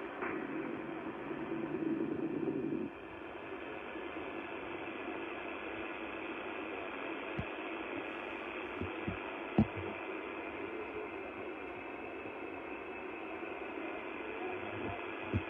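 A radio receiver hisses with steady static through its loudspeaker.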